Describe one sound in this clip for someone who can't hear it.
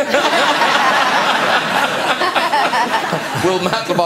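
A man laughs.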